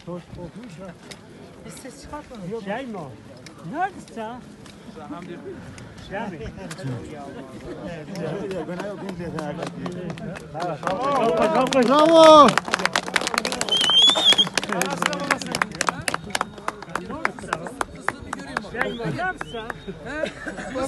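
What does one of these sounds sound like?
Several men talk and call out close by, outdoors.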